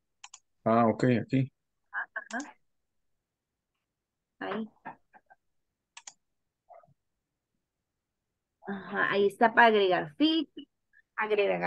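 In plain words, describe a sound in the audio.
A woman speaks calmly over an online call, pausing now and then.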